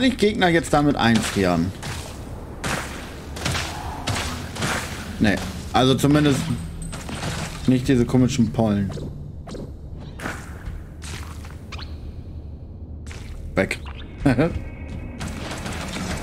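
Game gunfire shots and laser blasts ring out.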